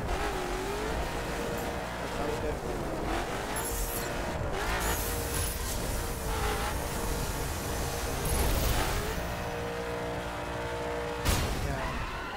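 A sports car engine roars and revs up and down.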